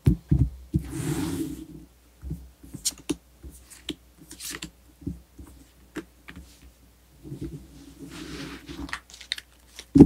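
Cards slide and shuffle across a cloth.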